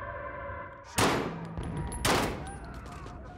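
A pistol fires two sharp shots.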